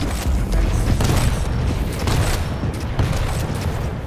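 Rockets explode with loud booms.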